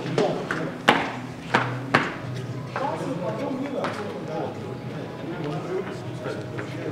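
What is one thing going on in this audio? Several men talk and murmur together.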